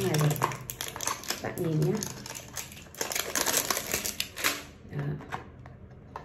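A cardboard box rustles and taps in a woman's hands.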